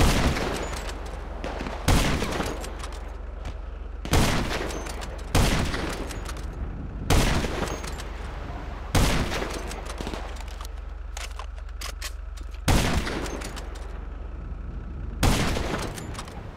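A rifle fires loud single shots that echo away.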